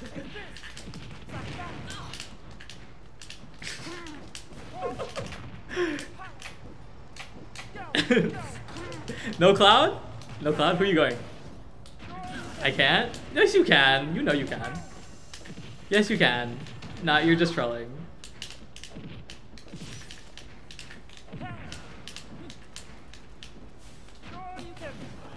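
Video game hits and effects crackle and pop.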